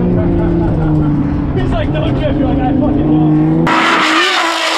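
A car engine drones loudly from inside the cabin.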